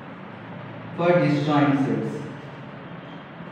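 A man speaks briefly and calmly nearby.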